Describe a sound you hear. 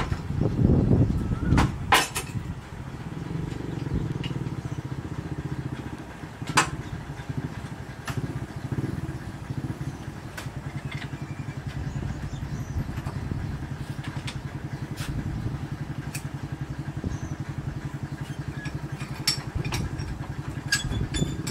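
A geared wheel turns with a steady rapid clatter.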